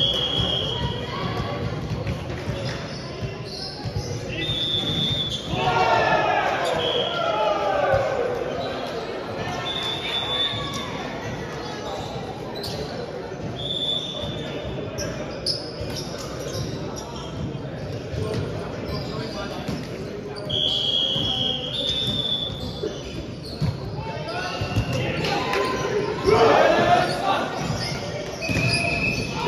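Sports shoes squeak sharply on a wooden court.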